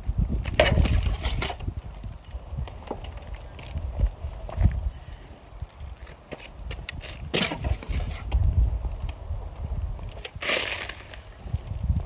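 A shovel scrapes and digs into loose soil.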